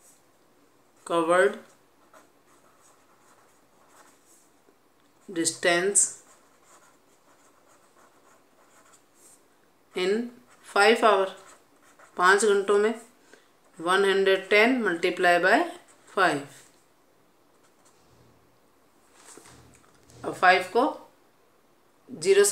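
A marker scratches across paper.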